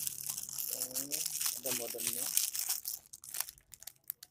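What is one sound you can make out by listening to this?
Plastic wrap crinkles as hands handle it.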